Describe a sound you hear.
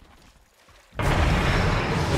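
A loud magical blast roars out with a rushing whoosh.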